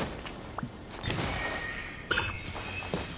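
An electric crackle bursts and fizzes out.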